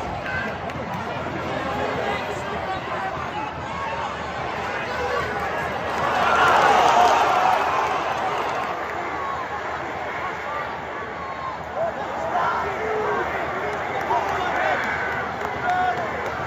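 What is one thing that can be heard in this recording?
A large football crowd chants and sings in an open stadium.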